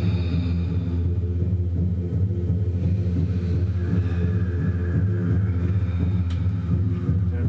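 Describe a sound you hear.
Large gongs ring with a deep, steady, shimmering hum.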